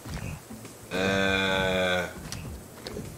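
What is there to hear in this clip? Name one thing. A bear roars loudly.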